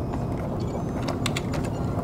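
Fingers tap keys on a keyboard.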